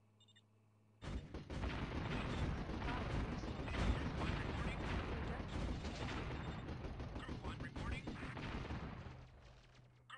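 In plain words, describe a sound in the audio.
Machine guns fire in rapid bursts during a battle.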